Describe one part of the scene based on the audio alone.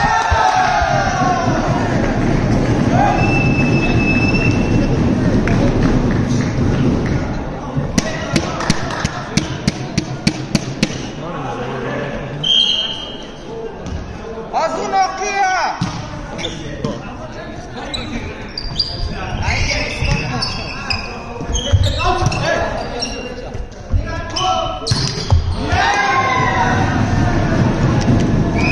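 Young men shout and cheer in an echoing hall.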